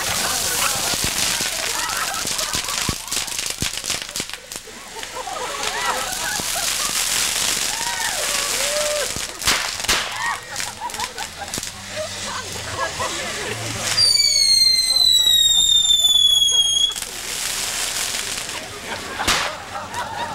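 Firecrackers pop sharply now and then.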